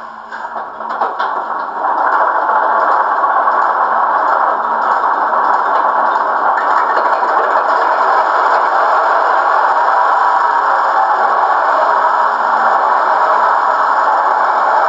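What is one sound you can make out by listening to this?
A model diesel locomotive's sound module plays a rumbling diesel engine through a small loudspeaker.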